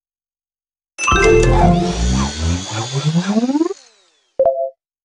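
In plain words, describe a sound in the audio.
A cheerful game jingle plays with a rising whoosh.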